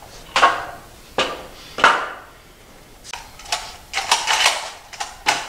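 Metal parts clank and knock together.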